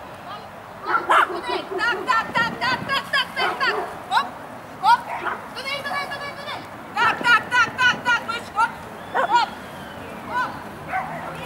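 A dog barks excitedly again and again outdoors.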